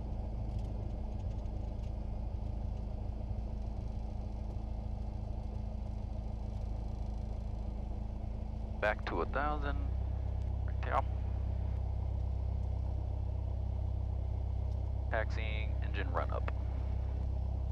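A small plane's engine drones steadily, shifting pitch partway through.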